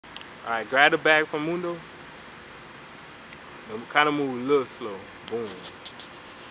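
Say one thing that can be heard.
A man speaks up close with animation.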